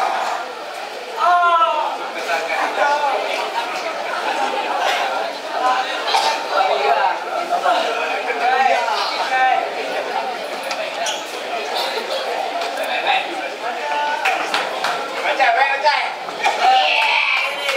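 A man speaks with animation over a loudspeaker in a large echoing hall.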